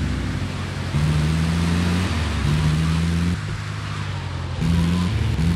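A vehicle engine hums steadily while driving, its pitch shifting up and down.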